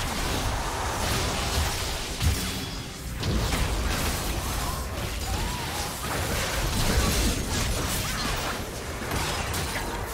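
Sword and weapon hits clash repeatedly.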